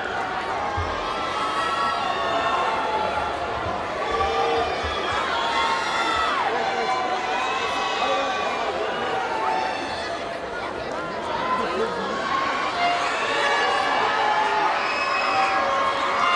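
A large crowd of young people sings together in a large echoing hall.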